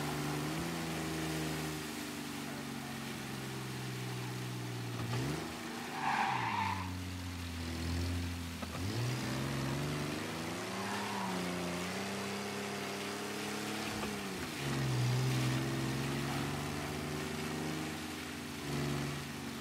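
A vintage sedan's engine revs and shifts gears as the car accelerates.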